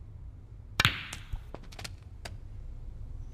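Snooker balls knock together and roll across the table.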